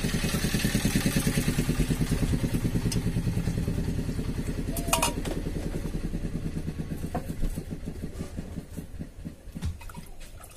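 A whisk beats rapidly in a metal bowl.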